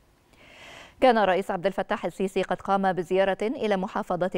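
A woman speaks clearly and calmly into a microphone.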